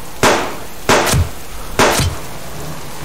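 Pistol shots crack loudly.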